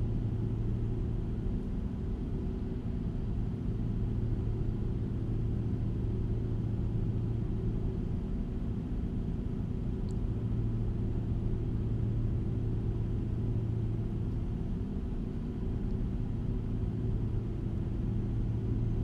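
A truck engine drones steadily at a low pitch while cruising.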